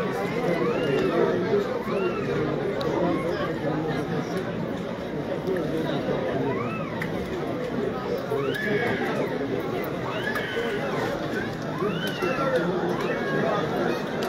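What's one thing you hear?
Men whistle loudly from the stands.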